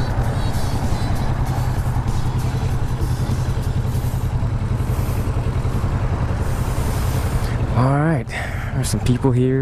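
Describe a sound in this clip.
A motorcycle engine idles with a steady, close rumble.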